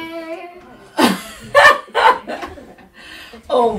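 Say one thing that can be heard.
A young girl squeals and laughs excitedly.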